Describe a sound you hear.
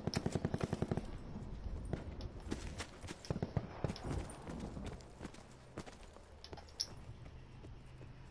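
Footsteps run over hard ground.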